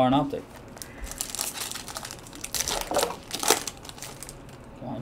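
A plastic wrapper crinkles and tears open.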